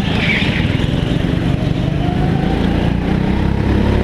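Another go-kart engine buzzes just ahead.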